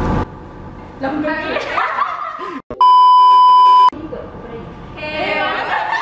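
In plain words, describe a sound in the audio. Several young women talk and laugh together close by.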